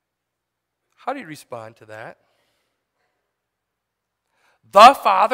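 A man speaks calmly through a microphone, in short bursts.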